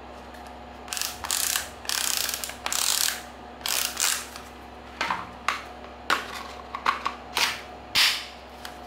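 A plastic battery pack clicks and scrapes as it slides out of a cordless drill.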